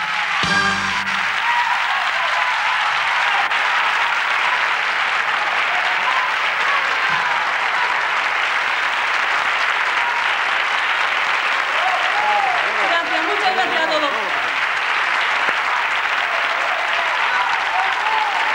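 A large audience applauds and cheers loudly in a big hall.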